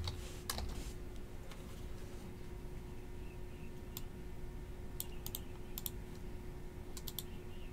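Playing cards rustle and click softly in a hand.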